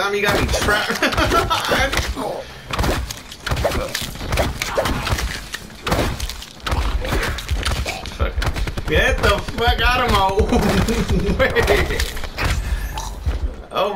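Zombies snarl and growl up close.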